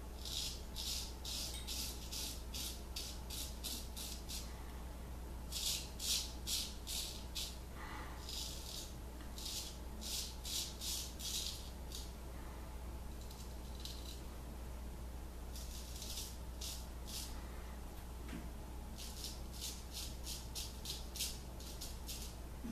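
A straight razor scrapes through stubble in quick short strokes.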